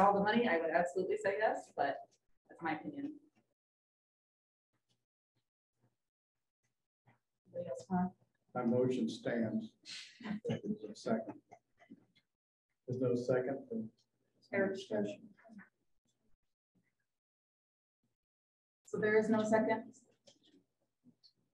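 A woman speaks calmly over an online call, pausing between phrases.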